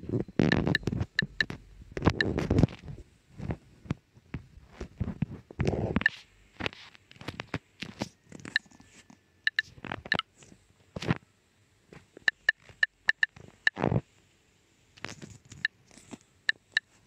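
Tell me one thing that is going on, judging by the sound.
Phone keyboard keys click in quick, short taps.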